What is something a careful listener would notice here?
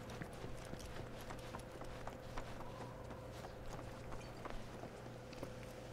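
Footsteps thud on wooden stairs and planks.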